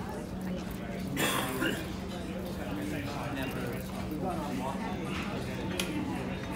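Men and women chat casually nearby.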